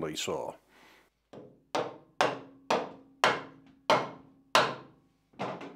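Small metal clicks and taps sound as a tool is set against a saw table.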